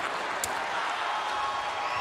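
A man shouts with strain.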